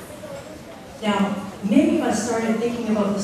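A woman speaks loudly through a microphone and loudspeaker.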